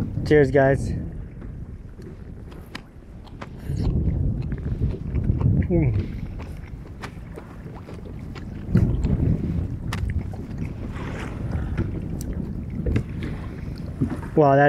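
Wind blows outdoors over open water.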